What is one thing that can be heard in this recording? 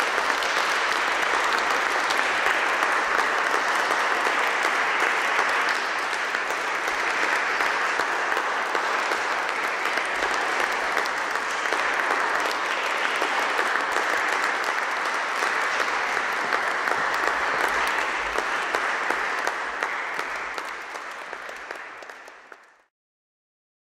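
An audience applauds steadily in a large echoing hall, then the clapping fades away.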